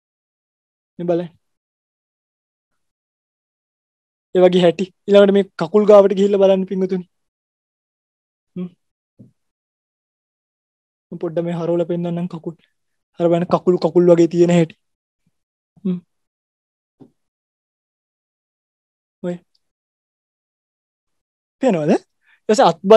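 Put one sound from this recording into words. A man speaks calmly into a close microphone, with pauses, as if over an online call.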